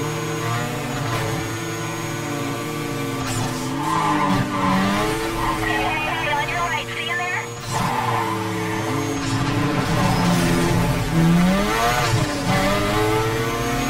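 A car engine roars at high revs, rising and falling as gears shift.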